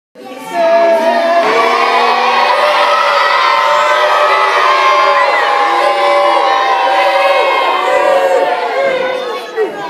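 A woman sings loudly with music through a loudspeaker in an echoing hall.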